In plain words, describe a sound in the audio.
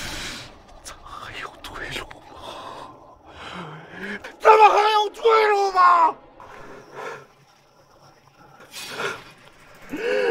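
A middle-aged man cries out and sobs in anguish close by.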